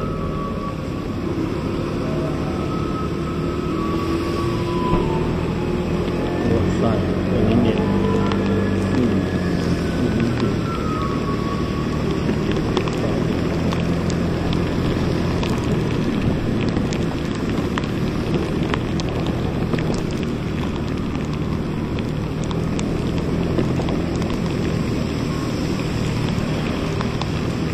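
A scooter engine hums steadily up close.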